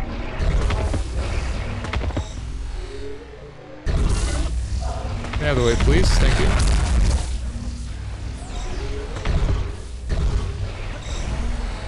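Energy blasts fire and crackle.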